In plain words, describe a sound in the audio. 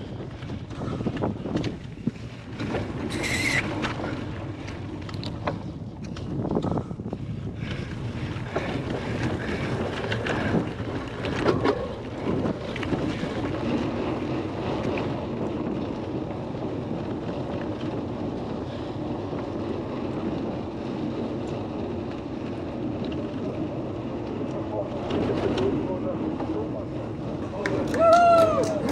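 Bicycle tyres rumble and bump over grass, cobbles and tarmac.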